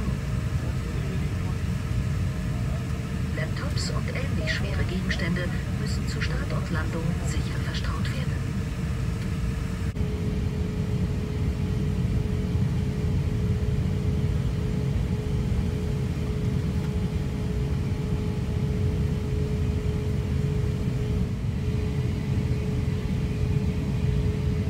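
A jet engine drones steadily in an aircraft cabin.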